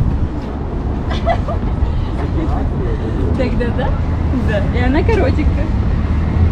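Adults chat in calm voices nearby.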